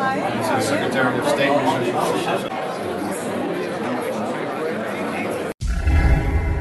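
A crowd of people chatter in a busy room.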